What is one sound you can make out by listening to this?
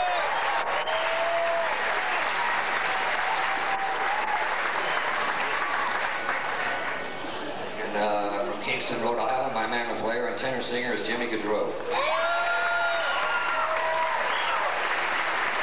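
A fiddle plays a quick melody.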